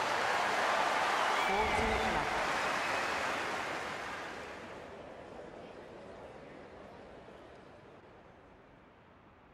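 A crowd cheers and applauds loudly, then slowly fades.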